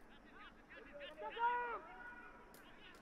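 A man shouts from a distance.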